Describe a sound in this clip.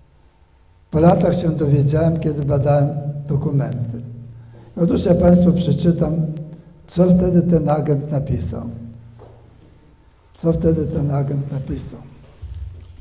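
An elderly man speaks calmly into a microphone in a room with a slight echo.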